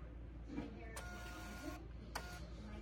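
A small label printer whirs briefly as it prints.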